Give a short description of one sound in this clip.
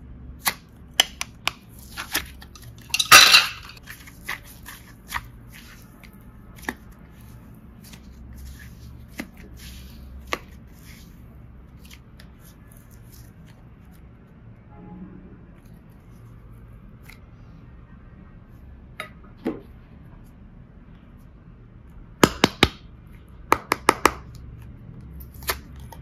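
Plastic containers click and knock against each other.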